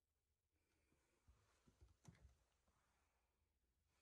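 A small fridge door is pulled open with a soft click.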